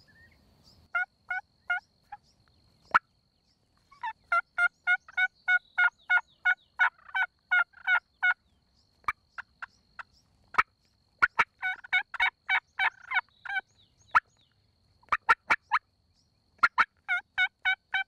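A turkey call yelps close by in quick series of sharp, high clucking notes.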